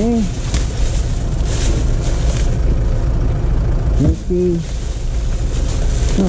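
Plastic bags rustle and crinkle as gloved hands rummage through them.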